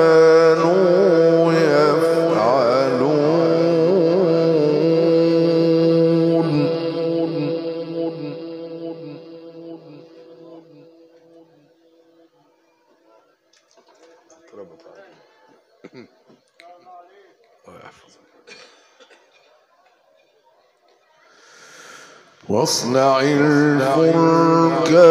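A man chants in a long, wavering melodic voice through a microphone.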